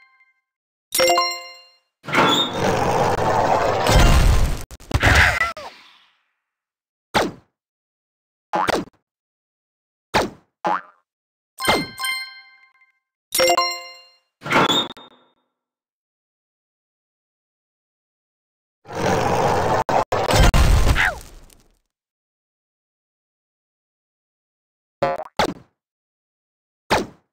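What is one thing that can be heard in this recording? Short chiming game sound effects play now and then.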